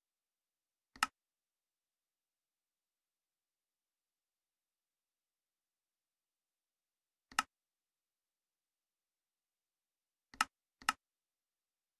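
A menu button clicks sharply a few times.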